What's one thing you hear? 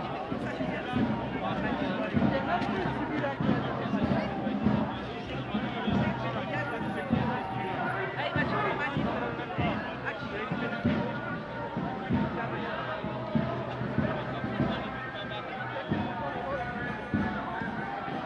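A crowd of men and women talk and chatter close by, outdoors.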